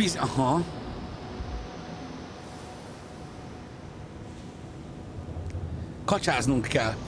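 Ocean waves surge and splash steadily.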